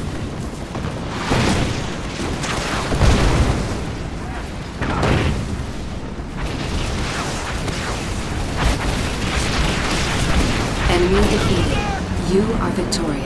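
Guns fire in rapid rattling volleys.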